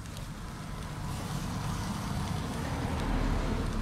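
Food sizzles on a hot charcoal grill.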